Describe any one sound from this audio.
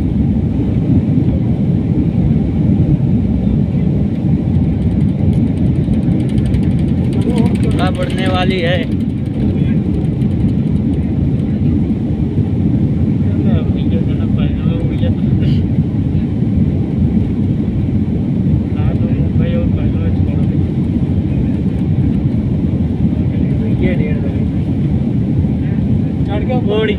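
A jet engine roars steadily as an airliner rolls along a runway, heard from inside the cabin.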